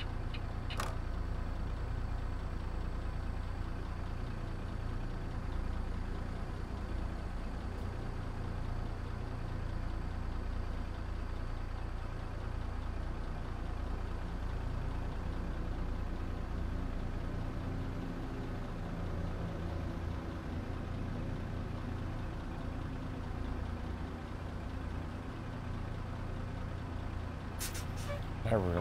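A heavy truck engine rumbles steadily from inside the cab.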